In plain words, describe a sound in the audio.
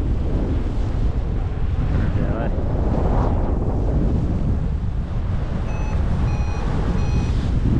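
Strong wind rushes and buffets loudly past the microphone.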